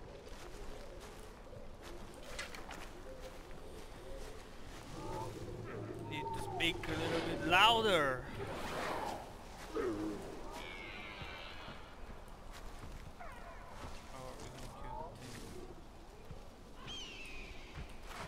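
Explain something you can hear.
Leaves and tall grass rustle as someone pushes through them.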